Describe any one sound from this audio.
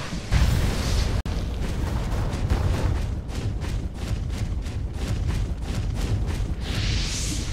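Blades strike in rapid clashing blows.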